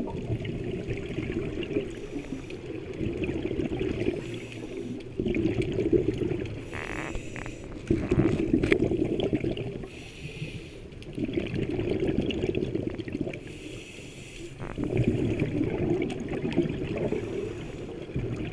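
Air bubbles rumble and gurgle from a diver's regulator in repeated bursts underwater.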